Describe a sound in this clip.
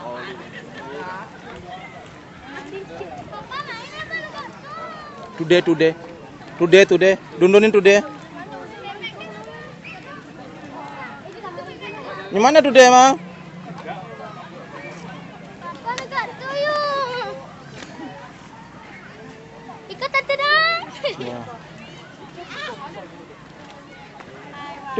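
Several people talk and call out nearby outdoors.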